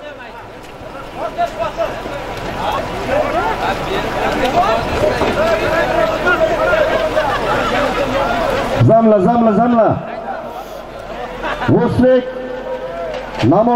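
A large crowd shouts and murmurs outdoors.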